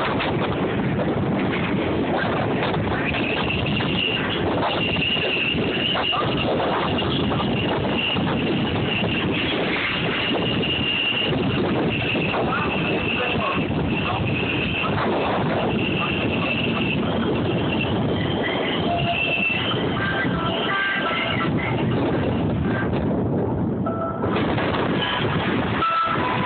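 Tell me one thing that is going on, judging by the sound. A passenger train rumbles and clatters along the track, heard from an open-air car.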